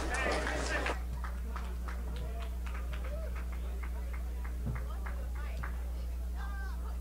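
People in a small audience clap steadily.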